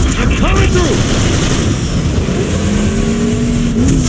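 A car engine revs.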